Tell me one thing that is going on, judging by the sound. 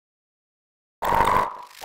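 A cartoon creature sings a brief note.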